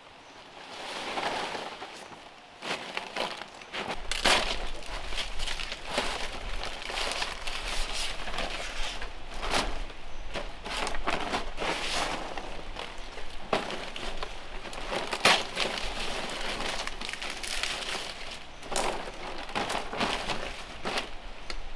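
Palm leaves rustle and crackle as they are laid on a roof.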